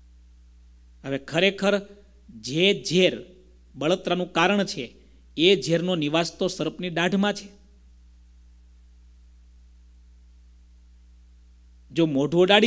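A man speaks calmly into a microphone, close by.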